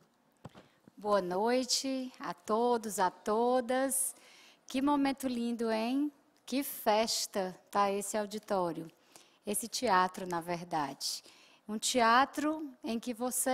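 A woman speaks with animation through a microphone in a large hall.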